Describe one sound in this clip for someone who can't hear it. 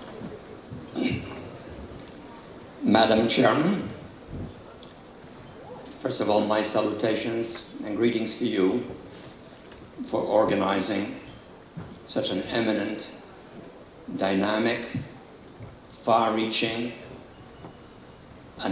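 An elderly man speaks slowly into a microphone, in a large echoing hall.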